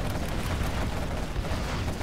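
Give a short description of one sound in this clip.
A rapid-firing cannon rattles in bursts.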